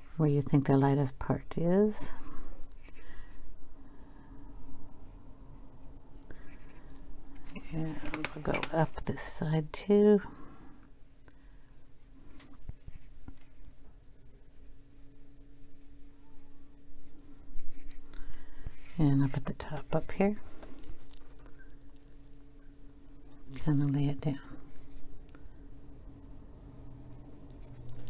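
A brush pen softly strokes across paper.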